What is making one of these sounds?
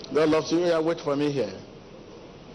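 A man speaks loudly into a microphone, heard through loudspeakers in a large echoing hall.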